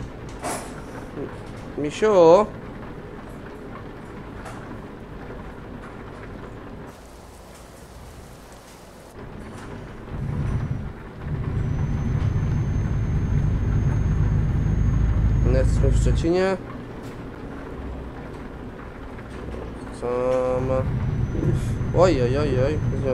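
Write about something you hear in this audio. A truck engine rumbles steadily, growing louder for a while before settling back down.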